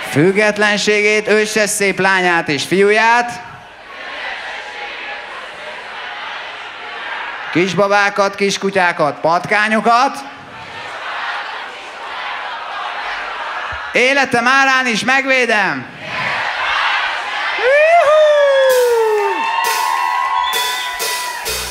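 A large crowd cheers and shouts in a big space.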